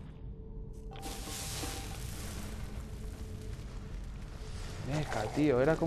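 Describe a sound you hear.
A fire spell roars and crackles.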